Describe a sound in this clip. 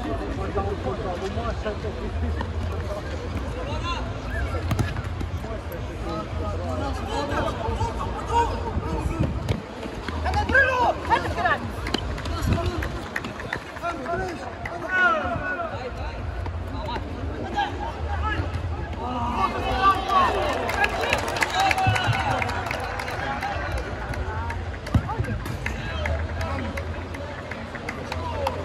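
A crowd of spectators chatters and cheers nearby.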